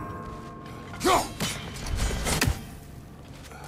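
An axe whirs back and lands in a hand with a heavy thud.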